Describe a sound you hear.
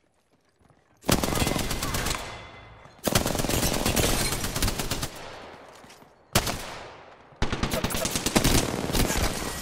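Gunfire rattles in loud rapid bursts.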